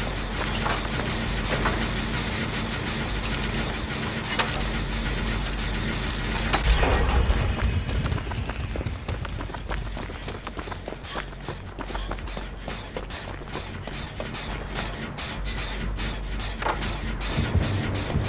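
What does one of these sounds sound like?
Metal parts of a machine rattle and clank.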